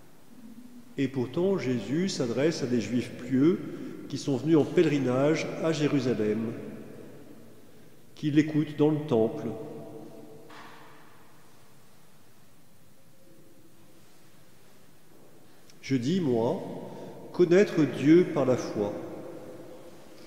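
A man chants slowly through a microphone in a large echoing hall, with pauses between phrases.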